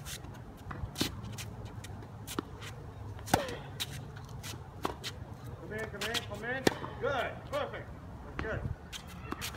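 A tennis ball is struck with sharp pops of a racket, back and forth.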